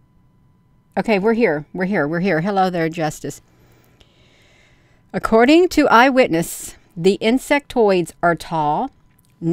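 An older woman talks with animation close to a microphone.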